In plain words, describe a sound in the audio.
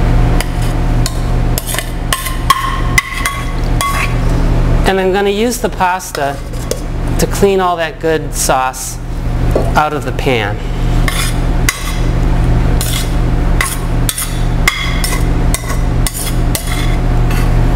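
Food slides and patters as it is poured into a metal bowl.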